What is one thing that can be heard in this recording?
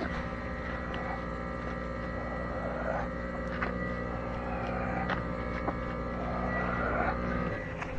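A tractor engine idles steadily close by.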